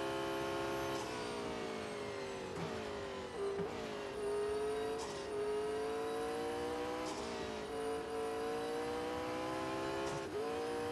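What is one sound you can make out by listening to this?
A racing car engine drops in pitch as the car brakes and downshifts for corners.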